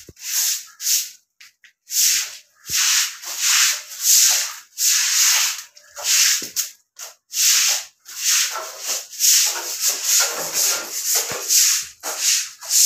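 A short broom sweeps a hard floor in quick, repeated swishing strokes.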